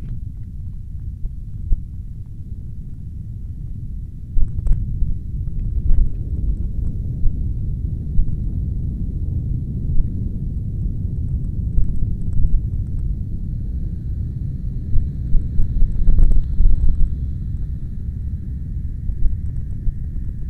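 An airplane drones by overhead at a distance.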